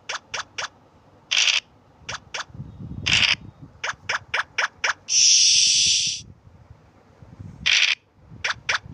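Game pieces hop along with quick short blips.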